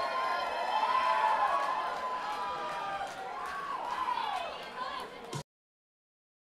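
A live band plays on stage in a large hall.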